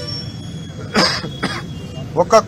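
A young man coughs once.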